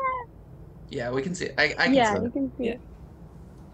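A woman speaks briefly, heard through an online call.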